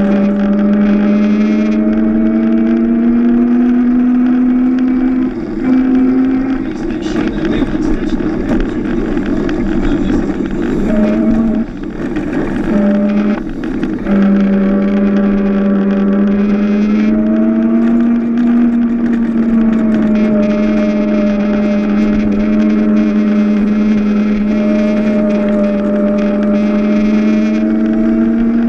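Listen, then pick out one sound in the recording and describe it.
A small kart motor whines steadily up close, dipping briefly in pitch through the turns.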